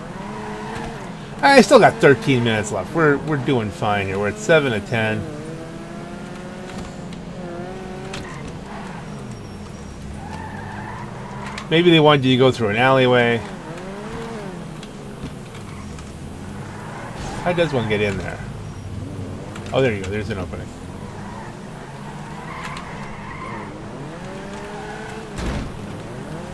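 A small car engine hums steadily as the car drives.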